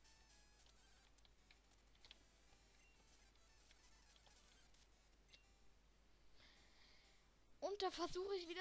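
Faint electronic game music plays.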